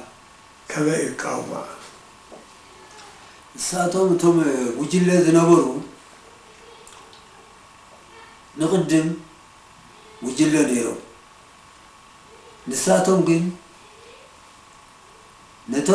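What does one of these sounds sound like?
An elderly man speaks slowly in short phrases with long pauses, close by.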